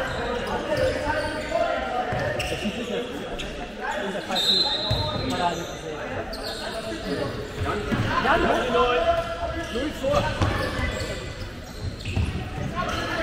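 Boys shout to each other during a handball game in a large echoing hall.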